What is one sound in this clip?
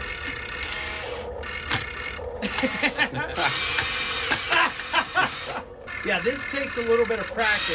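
A plastic tape dispenser clatters and knocks against a table as a toy excavator grips it.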